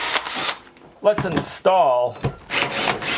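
A cordless drill revs up and down in short bursts.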